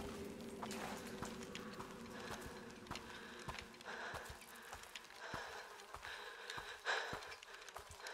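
A young woman breathes heavily.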